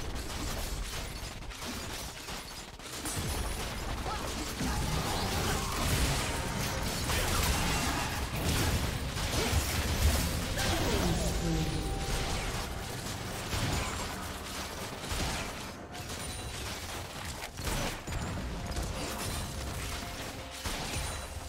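Magic blasts and weapon impacts clash in a noisy video game battle.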